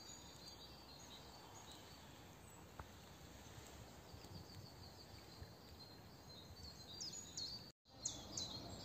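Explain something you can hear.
A shallow stream trickles softly.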